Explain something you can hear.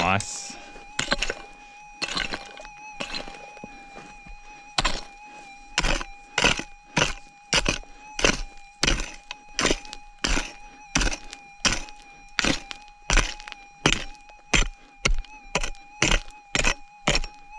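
A pick strikes dry, stony soil again and again.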